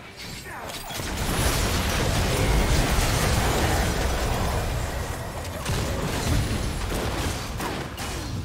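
Explosive game spell blasts boom and crackle in a fierce fight.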